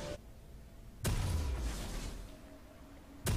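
A deep magical boom rings out and fades.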